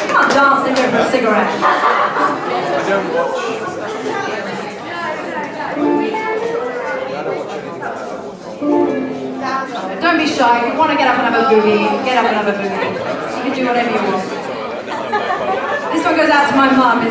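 A double bass thumps a walking bass line.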